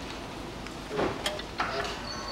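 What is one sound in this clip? A car door lock clunks.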